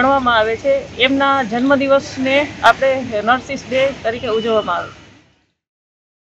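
A young woman speaks calmly into a microphone, close by.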